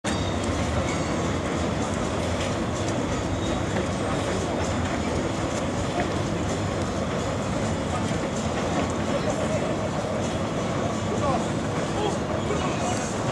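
A train rumbles steadily across a steel bridge.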